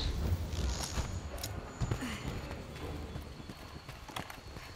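Footsteps thud on rocky ground.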